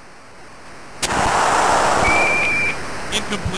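Football players' pads crash together in a tackle.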